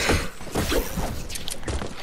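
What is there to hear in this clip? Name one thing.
A pickaxe swings with a whoosh.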